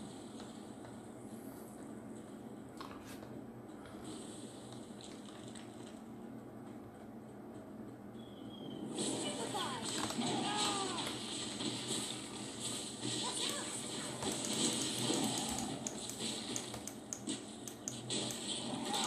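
Magic spell effects whoosh and crackle from a television speaker.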